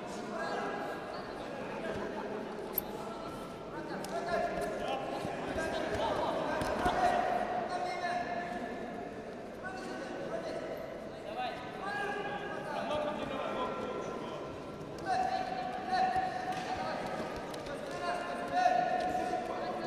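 Two wrestlers scuffle and thump on a padded mat.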